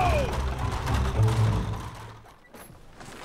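Carriage wheels and horse hooves rumble over a street.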